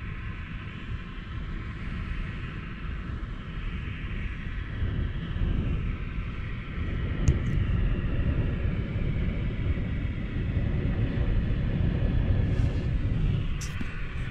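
Strong wind buffets a car, rumbling loudly outdoors.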